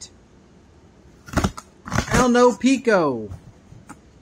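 A knife slices through packing tape.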